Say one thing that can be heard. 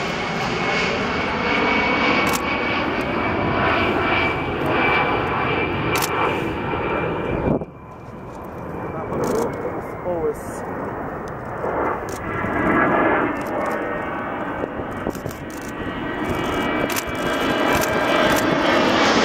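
The twin turbofans of an A-10 ground-attack jet roar and whine as it flies low overhead.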